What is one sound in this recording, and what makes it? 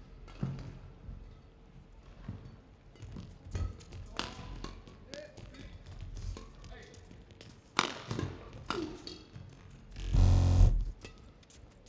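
Sports shoes squeak on a court floor.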